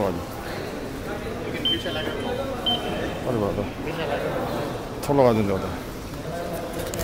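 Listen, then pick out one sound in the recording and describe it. A man talks nearby in a large echoing hall.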